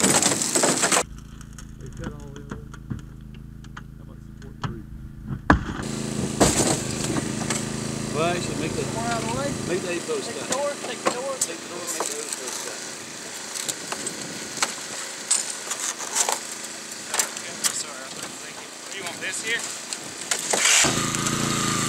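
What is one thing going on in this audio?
A hydraulic rescue tool whirs and crunches through metal.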